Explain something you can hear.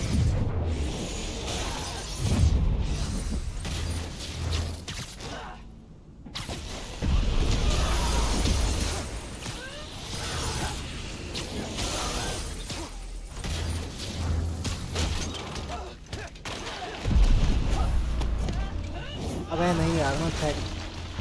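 Punches and blasts thud and crackle in a fast fight.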